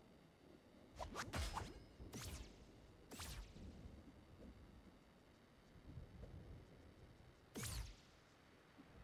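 Short magical whooshing effects sound in bursts.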